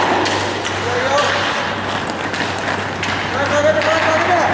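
Young players shout across the ice.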